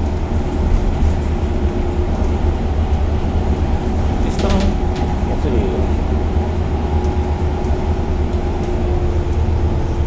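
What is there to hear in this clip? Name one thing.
Tyres roll on the road.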